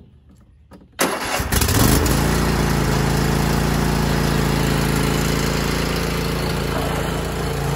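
A lawn tractor engine starts and runs with a steady loud drone.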